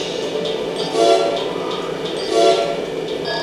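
Short electronic menu beeps sound.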